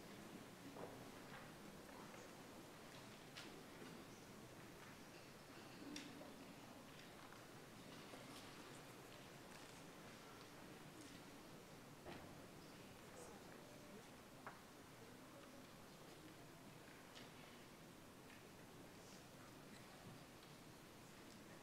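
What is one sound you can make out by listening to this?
A crowd murmurs and chatters quietly in a large echoing hall.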